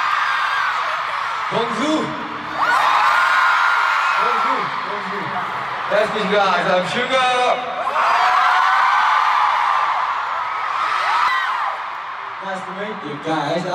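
A large crowd of fans screams and cheers loudly in an open stadium.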